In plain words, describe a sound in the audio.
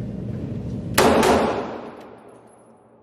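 A pistol fires a shot.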